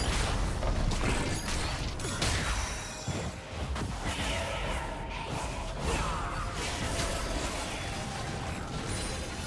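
Fantasy spell effects burst and whoosh in quick succession.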